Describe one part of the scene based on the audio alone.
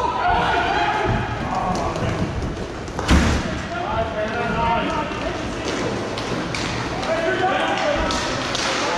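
Inline skate wheels roll and scrape across a hard floor in a large echoing hall.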